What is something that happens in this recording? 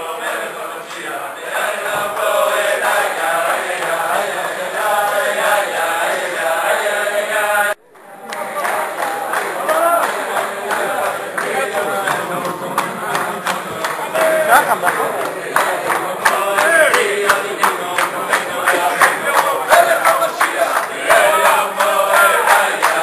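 A large crowd of men sings loudly together in an echoing hall.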